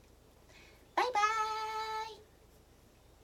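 A woman sings a long, clear note.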